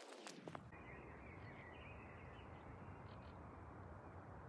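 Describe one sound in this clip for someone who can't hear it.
Gulls call overhead.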